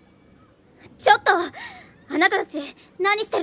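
A young woman calls out sharply with surprise.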